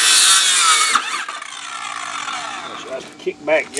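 A circular saw motor spins down and fades.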